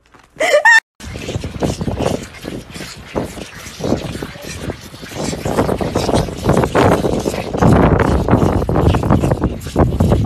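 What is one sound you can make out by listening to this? Calves suck and slurp milk noisily.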